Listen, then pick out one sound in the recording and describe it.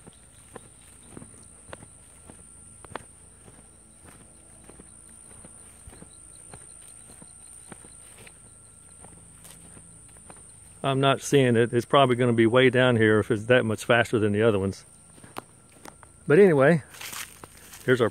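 Footsteps crunch softly on a dirt path outdoors.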